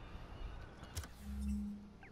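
A menu opens with a short electronic whoosh.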